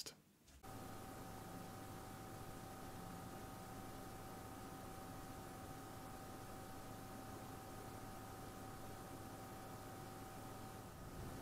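Computer fans hum softly and steadily.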